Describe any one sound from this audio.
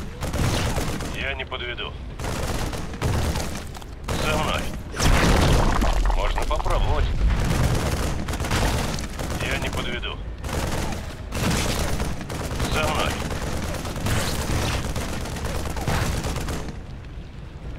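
Rapid gunfire and blasts crackle in a battle.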